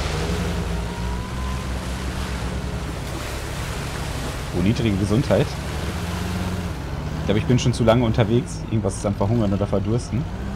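A vehicle engine hums steadily as it drives.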